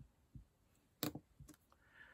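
A marker cap clicks.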